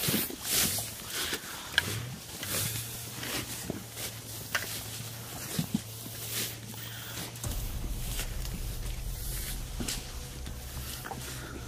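Footsteps tread through dense plants.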